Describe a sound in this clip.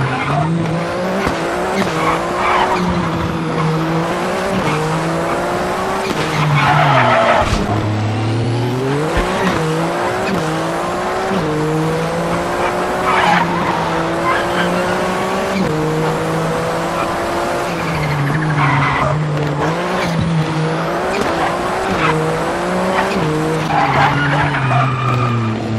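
A race car engine roars and revs up and down through the gears.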